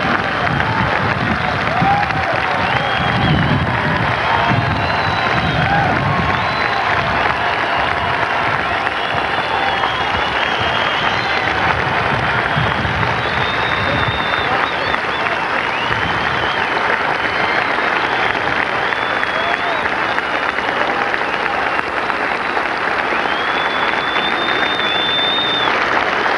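A large crowd cheers and claps in an open-air stadium.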